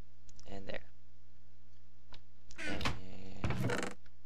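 A wooden chest lid thuds shut.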